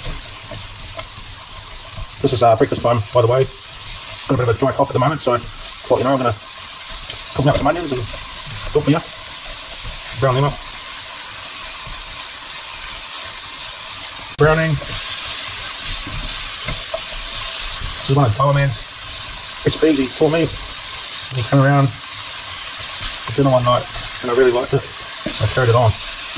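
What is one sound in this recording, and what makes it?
Onions sizzle steadily in a hot pan.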